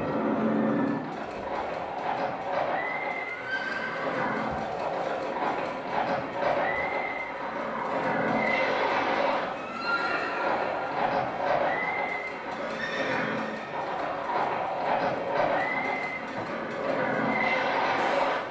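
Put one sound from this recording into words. Feet stamp and shuffle on a wooden stage.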